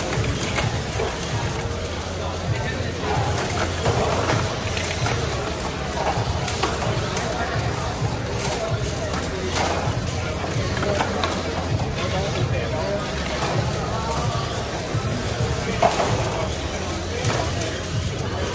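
Robots bump and clatter against each other and the walls.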